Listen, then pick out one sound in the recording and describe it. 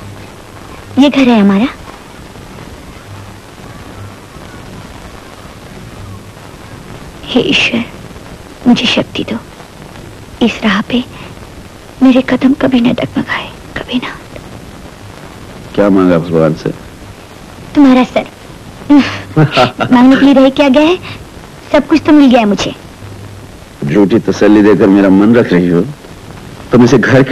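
A young woman speaks softly and pleadingly, close by.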